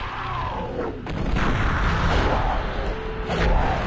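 Bodies thud onto the floor.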